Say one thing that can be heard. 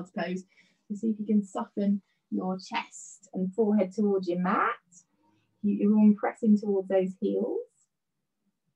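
A woman speaks calmly, giving instructions through an online call.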